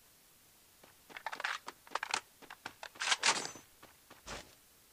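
Footsteps thud quickly on grass.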